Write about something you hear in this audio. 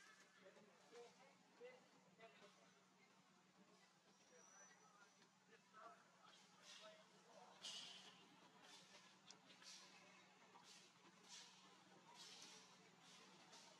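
Leaves and branches rustle and creak as a monkey climbs and swings.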